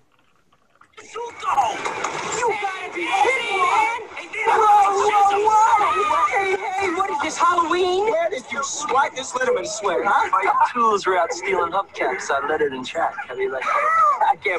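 An upbeat song with singing plays loudly.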